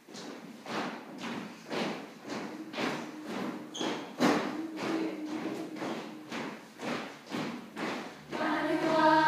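A choir of children sings together in a large echoing hall.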